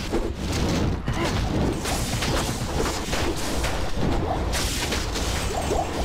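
Game spells crackle and burst in rapid succession during a fight.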